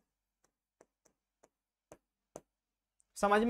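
A pen taps softly on a board.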